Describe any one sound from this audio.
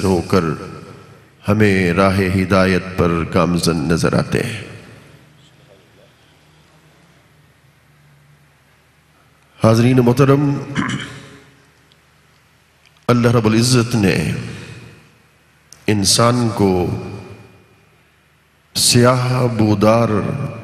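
An elderly man recites in phrases, chanting with feeling through a microphone, in an echoing space.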